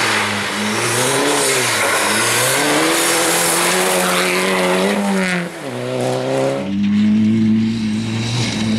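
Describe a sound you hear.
A rally car engine revs hard and changes pitch as it shifts gears.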